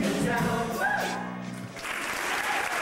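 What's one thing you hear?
A cast of young performers sings loudly on stage.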